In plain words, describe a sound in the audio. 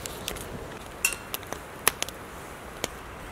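Small clicks and taps sound close by.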